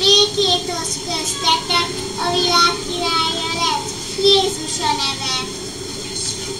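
A young girl speaks brightly into a nearby microphone.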